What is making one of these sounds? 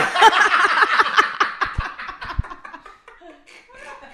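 Two young men laugh loudly into microphones.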